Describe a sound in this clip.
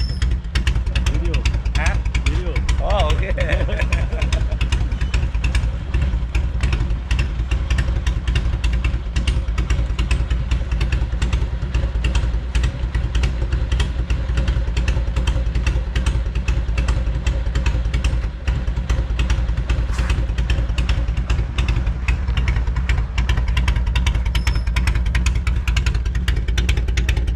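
A motorcycle engine idles close by with a steady, throbbing rumble.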